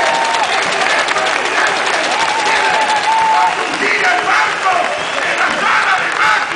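A large crowd cheers and chants loudly outdoors.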